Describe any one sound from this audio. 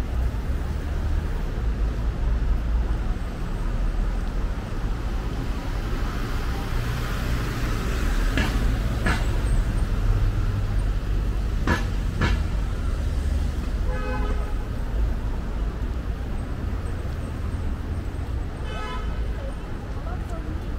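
Footsteps tap on a paved sidewalk.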